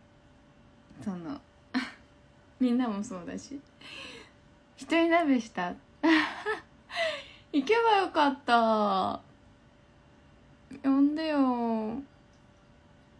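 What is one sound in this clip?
A young woman talks and laughs close to a microphone, with animation.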